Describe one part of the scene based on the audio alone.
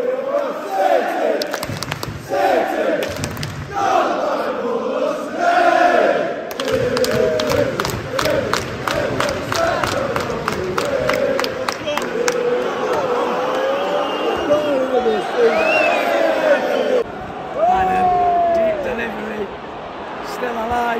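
A large stadium crowd sings and chants loudly outdoors.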